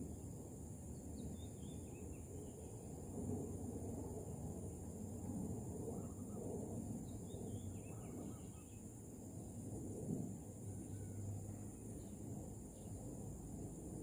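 A small bird chirps softly now and then.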